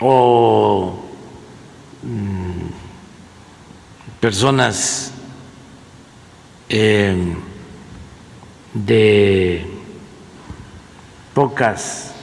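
An elderly man speaks slowly and deliberately into a microphone, with long pauses between phrases.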